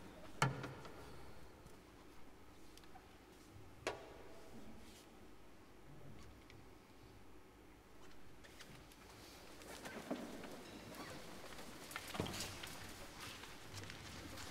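Musicians shuffle and settle in a quiet, echoing hall.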